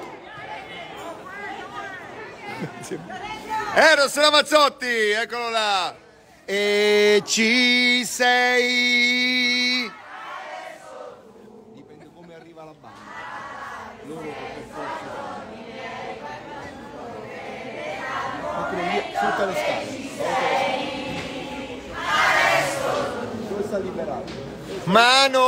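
A crowd chatters and cheers nearby.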